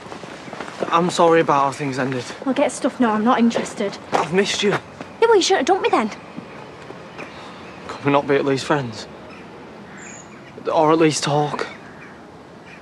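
A teenage boy speaks with worry close by.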